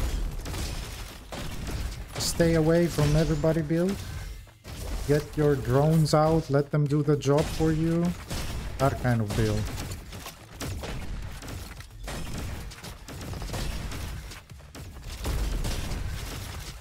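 Guns fire in quick bursts of sharp shots.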